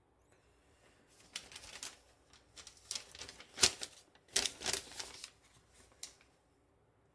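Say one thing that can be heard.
Newspaper rustles as it is handled.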